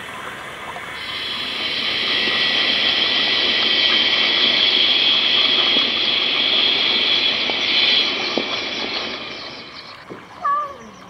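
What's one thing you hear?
Water churns and splashes under a pedal-driven water bike.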